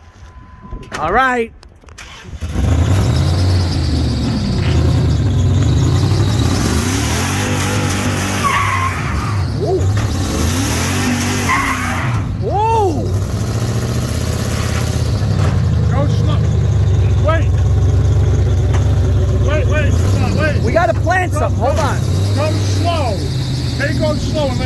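Tyres squeal sharply on pavement as a truck spins in circles.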